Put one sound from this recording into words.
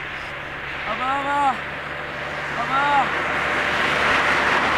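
A young man shouts loudly outdoors.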